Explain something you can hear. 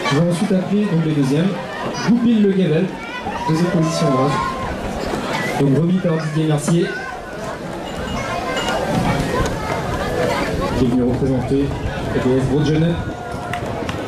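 A man speaks with animation through a loudspeaker outdoors.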